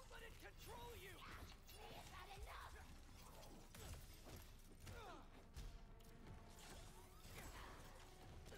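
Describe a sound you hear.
Fighting sounds from a game thud and clash.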